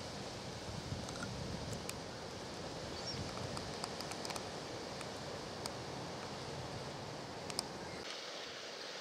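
Wind blows outdoors, rumbling against the microphone.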